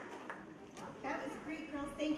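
A woman speaks calmly into a microphone over loudspeakers.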